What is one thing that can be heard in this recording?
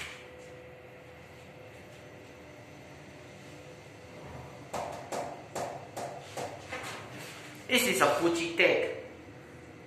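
An elevator hums quietly and steadily.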